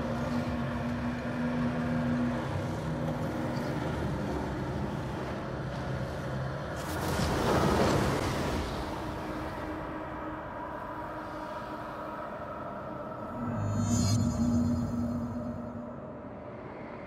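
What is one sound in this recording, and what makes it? Swirling debris rumbles and whooshes in a deep, echoing space.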